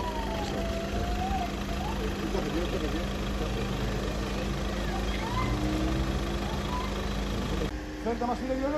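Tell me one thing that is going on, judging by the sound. A man talks on a mobile phone outdoors.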